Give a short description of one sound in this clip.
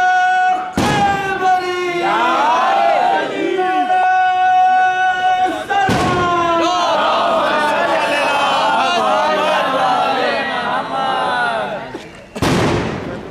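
A crowd of men chants and shouts loudly together outdoors.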